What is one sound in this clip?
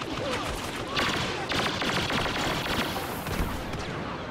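A blaster fires rapid shots.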